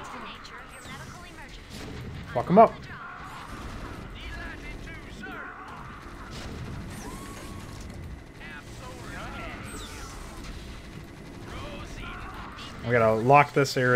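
Rapid gunfire crackles in a battle.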